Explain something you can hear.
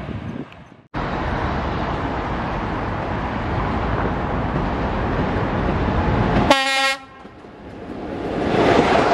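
An electric locomotive approaches along the tracks, growing louder.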